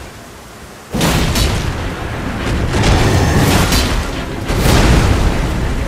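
A huge creature lets out a loud, rumbling roar.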